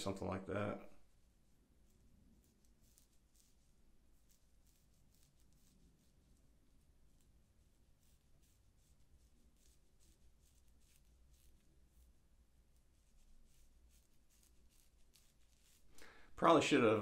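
A razor scrapes softly across a scalp.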